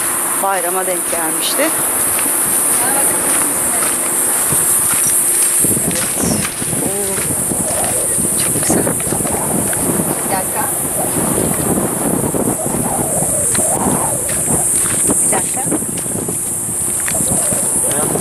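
A young woman talks casually nearby outdoors.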